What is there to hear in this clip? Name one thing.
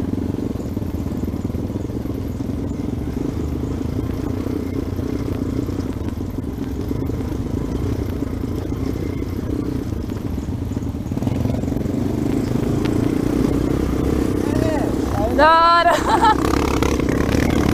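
A dirt bike engine hums, cruising at low speed.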